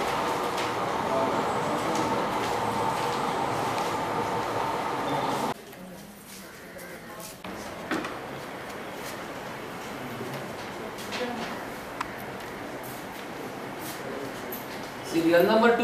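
Several people murmur and chatter indoors.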